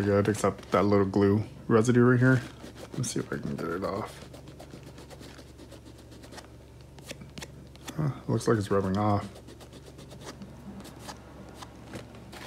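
Fingers rub and tap against a leather shoe.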